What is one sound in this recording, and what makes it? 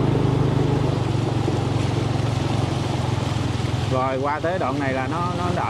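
Water swishes and splashes under moving wheels.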